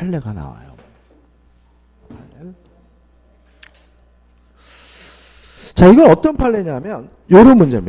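A middle-aged man speaks animatedly into a microphone, close and amplified.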